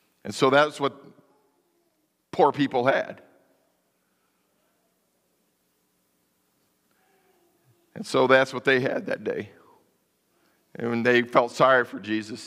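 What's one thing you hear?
A man speaks in short bursts through a microphone, heard in a large room with some echo.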